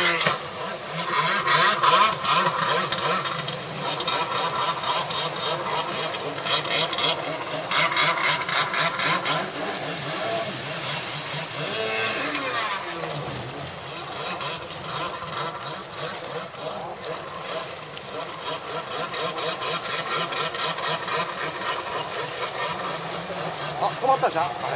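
Water sprays and splashes behind a jet ski.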